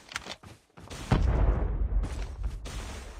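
A blast booms nearby.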